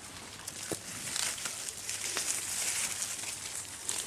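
Leaves rustle as a hand brushes through a bush.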